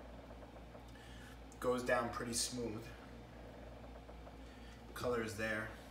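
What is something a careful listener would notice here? Beer pours from a can into a glass.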